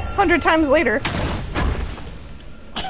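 A heavy chest lid bursts open with a rushing whoosh.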